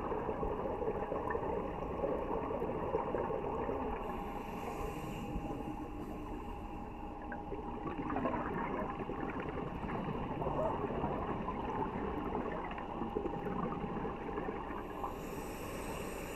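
Underwater, a low steady rushing murmur of water fills the sound.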